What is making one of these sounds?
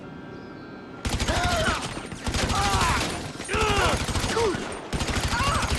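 An assault rifle fires in automatic bursts.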